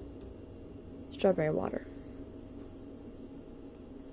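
A plastic bottle is picked up from a counter.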